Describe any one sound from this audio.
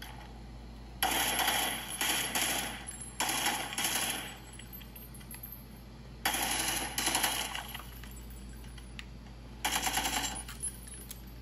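Bursts of gunfire and game sounds play from a handheld console's small speakers.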